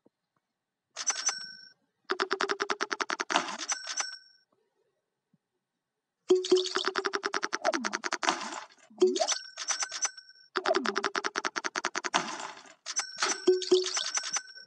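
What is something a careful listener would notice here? Bright little chimes ring as cash is picked up.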